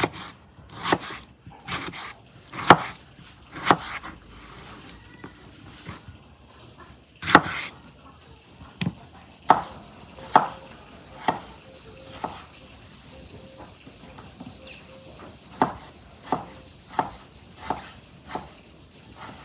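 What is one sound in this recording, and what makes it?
A knife chops through tomatoes onto a wooden board with sharp knocks.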